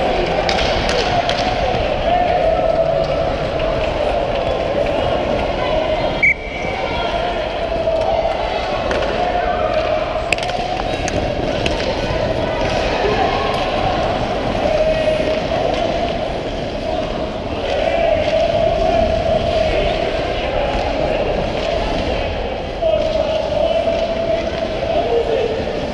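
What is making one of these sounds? Ice skates scrape and carve across the ice close by.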